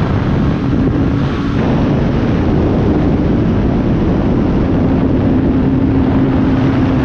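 Wind rushes loudly past the aircraft.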